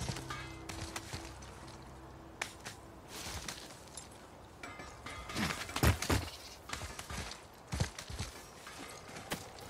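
Hands grab and scrape against rock as a climber pulls upward.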